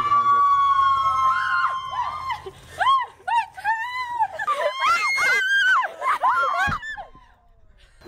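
A young woman sings loudly and playfully close by.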